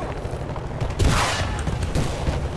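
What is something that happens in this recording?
A rocket launcher fires with a loud blast.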